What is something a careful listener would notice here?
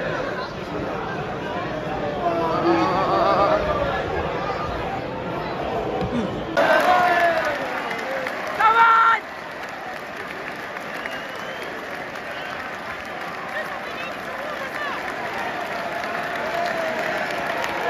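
A large stadium crowd sings and chants loudly outdoors.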